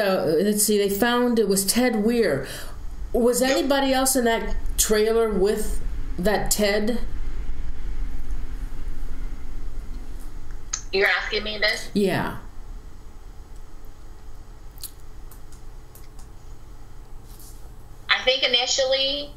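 A woman speaks with animation over an online call.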